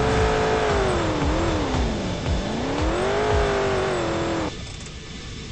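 A car engine revs up and down, then cuts off.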